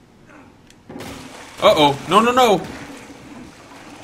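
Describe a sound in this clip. A wooden bridge cracks and collapses with a crash.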